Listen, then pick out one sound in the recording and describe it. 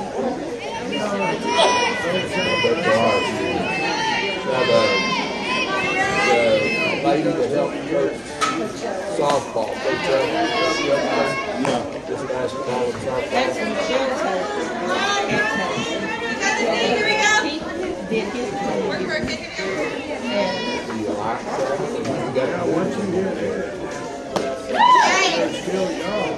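Young women on a team chant and cheer loudly outdoors.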